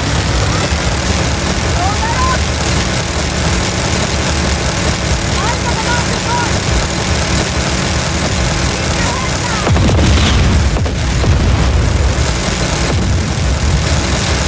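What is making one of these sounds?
A heavy machine gun fires in rapid, continuous bursts.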